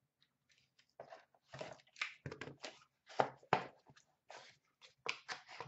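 A cardboard box lid scrapes open.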